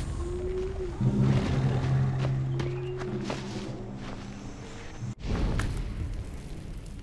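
Leafy bushes rustle as someone pushes through them.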